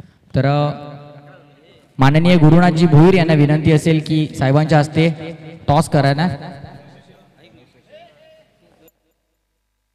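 A man speaks with animation through a loudspeaker.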